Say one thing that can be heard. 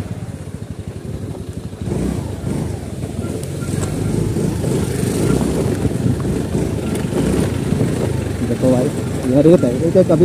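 A bus engine rumbles as it passes close by.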